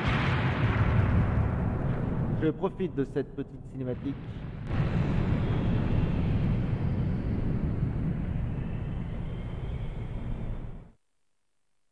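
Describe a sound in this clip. A deep, loud rumbling roar of flames fills the air and fades out.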